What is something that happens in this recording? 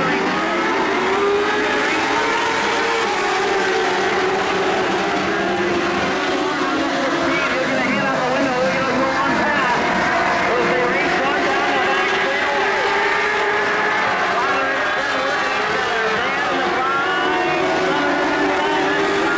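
Race car engines roar and whine loudly.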